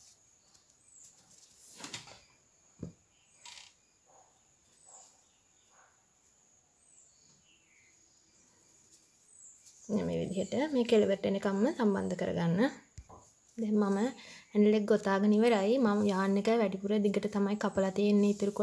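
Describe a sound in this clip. Yarn rustles softly as a crochet hook works through it.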